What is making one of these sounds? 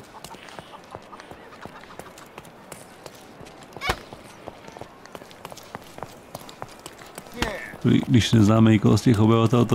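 Quick footsteps run on stone.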